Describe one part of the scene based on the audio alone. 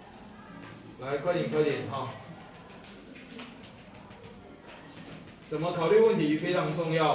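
A man speaks calmly nearby, as if explaining.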